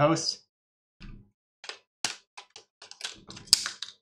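Plastic packaging clicks and rustles as it is handled.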